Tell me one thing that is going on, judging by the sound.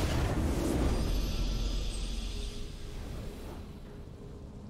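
A triumphant victory fanfare swells and then fades away.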